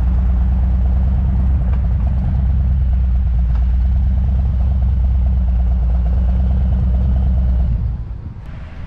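A motorcycle engine rumbles loudly as the bike rolls slowly along.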